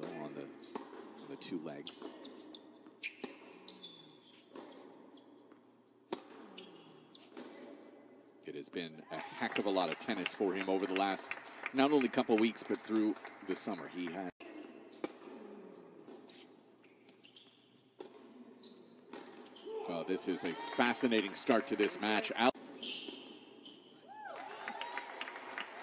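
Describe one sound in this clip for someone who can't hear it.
A tennis ball is struck back and forth with sharp pops of the racket.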